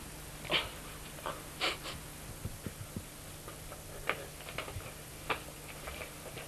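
A young woman sobs and gasps nearby.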